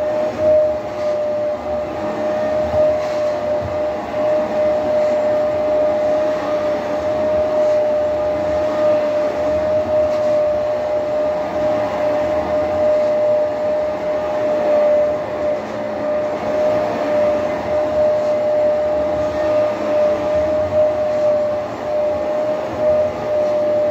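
A carpet cleaner hums steadily with a high whine.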